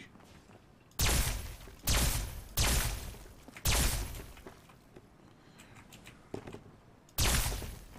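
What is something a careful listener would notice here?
A ray gun fires sharp blasts again and again.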